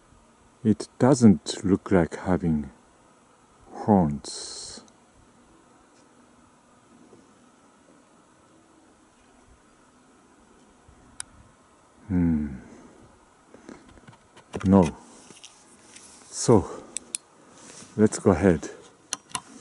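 A deer gives loud, sharp barks in the dark, several times.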